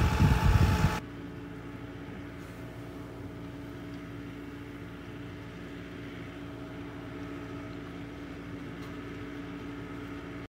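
A diesel tractor hums far off.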